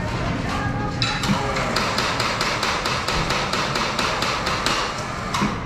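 A coffee grinder whirs steadily.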